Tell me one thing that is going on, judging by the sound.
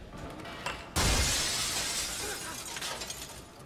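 A skater crashes hard onto the ground.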